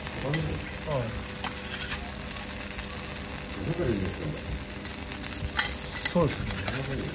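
Metal spatulas scrape and clink on a griddle.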